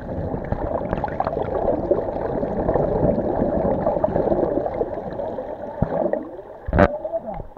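Water churns and bubbles, muffled underwater.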